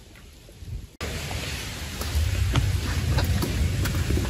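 Wind blows across a microphone outdoors.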